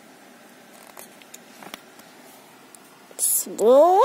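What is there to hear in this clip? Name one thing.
A page of a book turns with a paper rustle.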